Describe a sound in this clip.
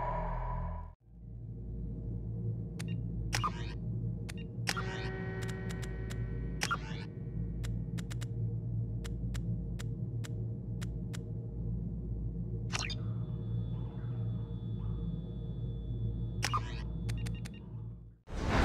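Soft, steady music plays.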